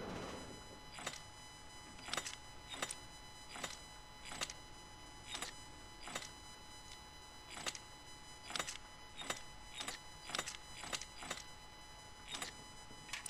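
The dials of a combination lock click as they turn.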